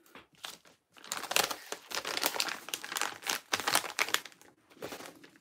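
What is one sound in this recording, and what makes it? A padded paper envelope crinkles and rustles as hands fold it.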